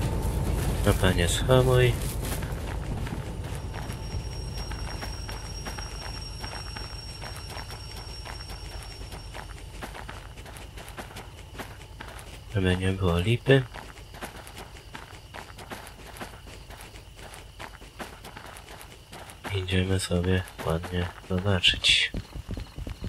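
A train horn blows loudly several times.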